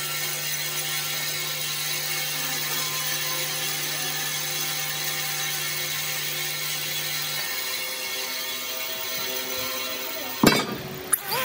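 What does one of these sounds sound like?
A band saw hums as it cuts through wood.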